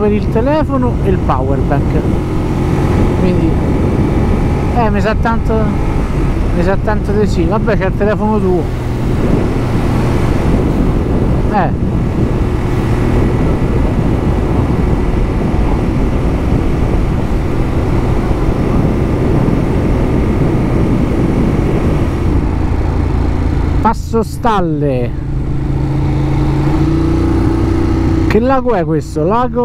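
A motorcycle engine revs up and down between gear changes.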